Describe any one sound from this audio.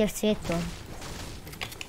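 A video game pickaxe strikes a wall with sharp knocks.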